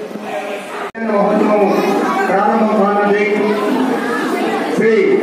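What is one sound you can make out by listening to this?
A man chants prayers loudly through a microphone in a sing-song voice.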